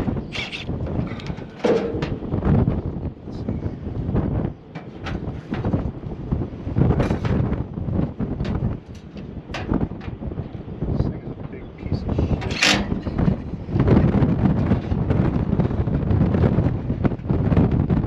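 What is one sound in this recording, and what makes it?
A metal fan guard rattles and clanks as it is handled.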